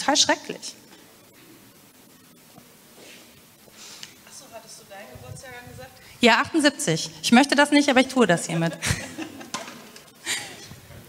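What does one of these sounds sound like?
A woman speaks calmly into a microphone in an echoing hall, with pauses.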